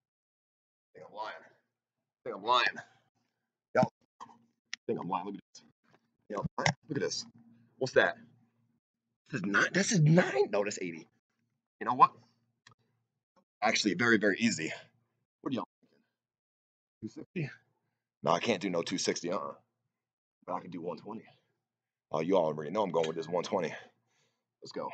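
A young man talks close by, in short bursts.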